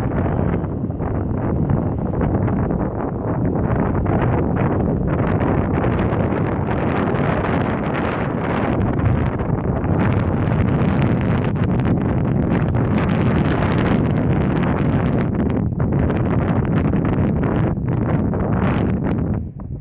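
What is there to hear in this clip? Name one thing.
Strong wind buffets the microphone outdoors with a steady roar.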